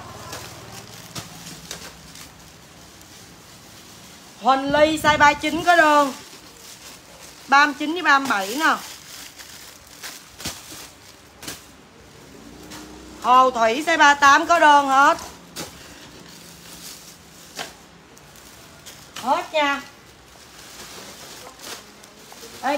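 Plastic bags rustle as they are handled.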